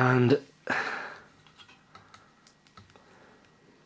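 A charger plug clicks into a mobile phone.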